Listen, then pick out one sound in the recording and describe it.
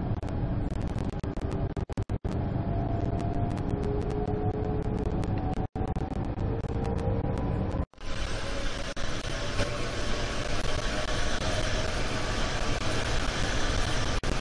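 An electric train motor whines, rising in pitch as the train speeds up.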